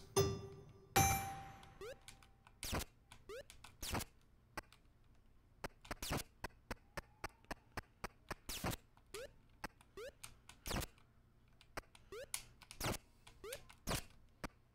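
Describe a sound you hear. Short electronic game blips and chirps sound at irregular intervals.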